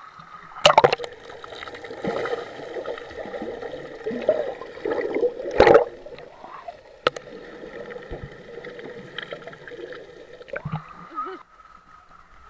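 Water gurgles and bubbles, heard muffled underwater.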